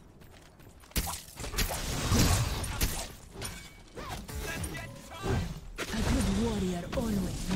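Magic spell effects whoosh and crackle.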